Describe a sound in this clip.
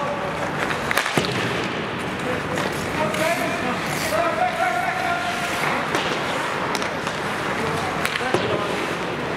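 Hockey sticks clack against a puck.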